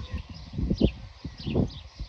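Birds chirp nearby.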